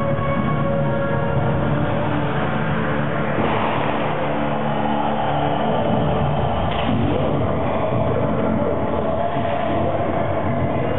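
Loud pop music plays through a large hall's speakers.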